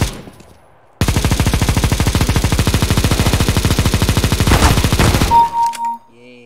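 A machine gun fires a long, rapid burst at close range.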